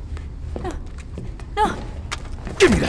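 A young man shouts in protest.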